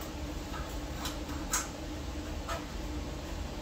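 Metal tools clink against an engine.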